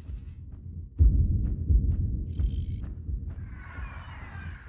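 A loud explosion booms with a deep, rolling rumble.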